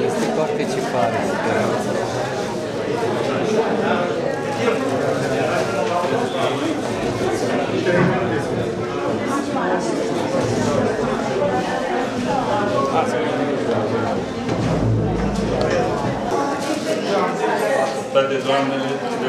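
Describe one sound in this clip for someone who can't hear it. A crowd of men and women chatter all around in a room that echoes.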